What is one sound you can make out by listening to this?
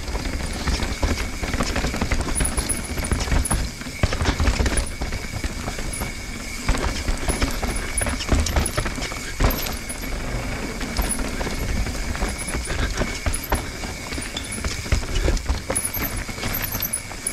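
Wind buffets the microphone steadily.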